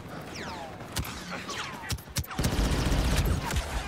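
Rifle shots crack out in quick bursts.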